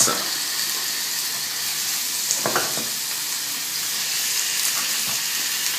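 Pieces of food drop into a frying pan with soft thuds.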